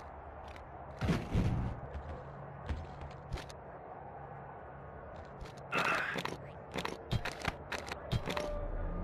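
Footsteps clang on metal ladder rungs.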